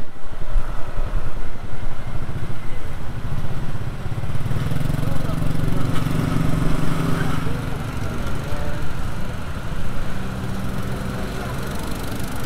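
Motorbike engines idle and putter close by.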